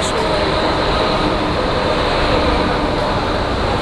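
A tram rolls past.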